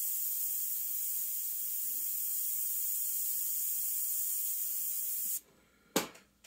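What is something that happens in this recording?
An airbrush hisses steadily as it sprays paint.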